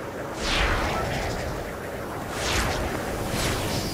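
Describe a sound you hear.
Wind rushes past during a glide through the air.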